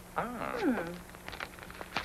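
A woman exclaims in a rising and falling voice nearby.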